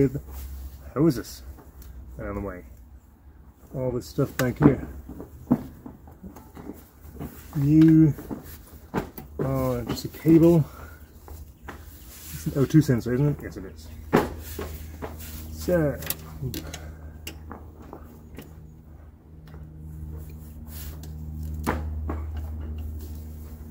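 Plastic engine parts click and knock under a man's hands.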